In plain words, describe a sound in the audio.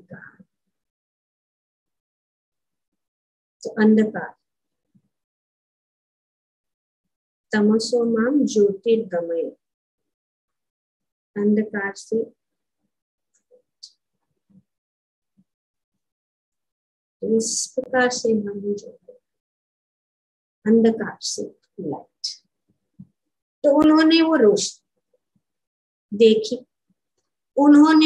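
An older woman speaks calmly through a microphone on an online call, with long pauses.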